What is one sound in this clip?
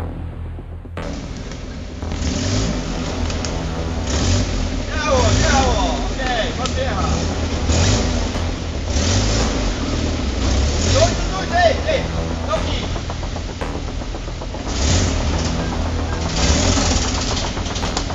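A truck engine revs and labours nearby, outdoors.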